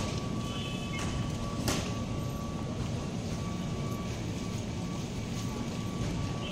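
A baggage conveyor belt rumbles steadily.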